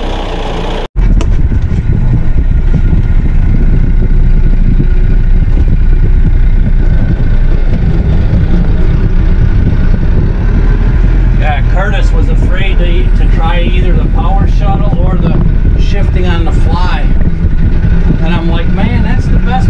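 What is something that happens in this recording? A diesel utility tractor engine hums, muffled inside a closed cab, as the tractor drives.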